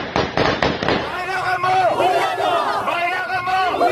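A young woman chants loudly among other women.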